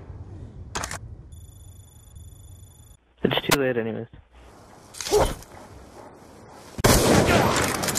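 A sniper rifle fires a loud, sharp shot.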